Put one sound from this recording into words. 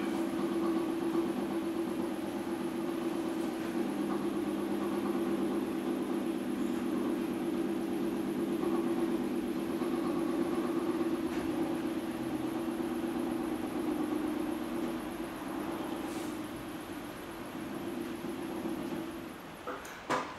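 A potter's wheel hums steadily as it spins.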